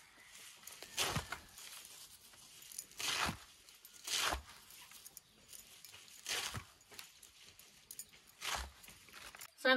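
A blade chops leaves with sharp cuts.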